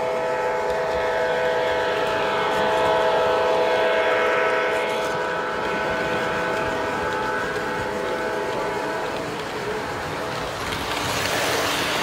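A model train rolls by, its wheels rumbling and clicking on the track.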